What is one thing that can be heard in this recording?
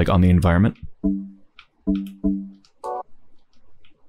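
Short electronic menu tones blip.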